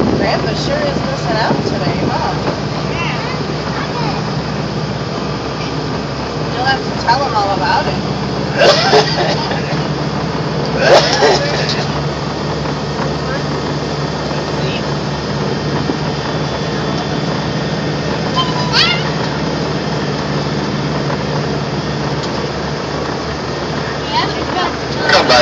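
A crowd chatters outdoors in the distance.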